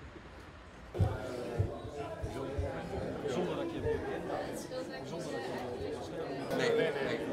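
Two men talk calmly face to face, close by.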